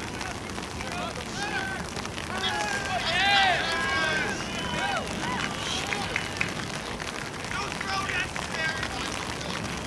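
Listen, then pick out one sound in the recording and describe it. Young men shout and cheer from a distance outdoors.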